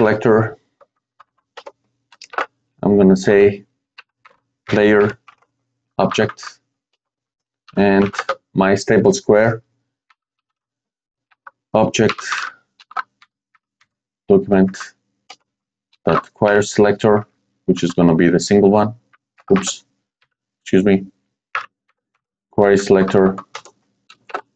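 A man talks calmly and close into a microphone, in short phrases with pauses.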